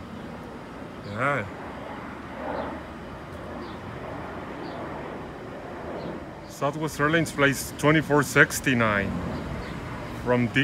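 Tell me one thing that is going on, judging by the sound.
A jet airliner roars steadily overhead.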